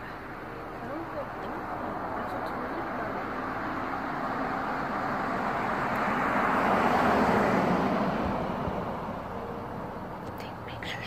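A car drives past along the street, rising and then fading away.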